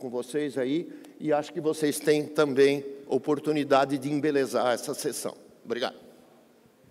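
An elderly man speaks calmly into microphones.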